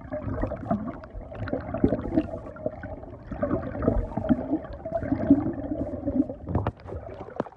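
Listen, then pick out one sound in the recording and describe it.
Water rumbles and gurgles, heard muffled from underwater.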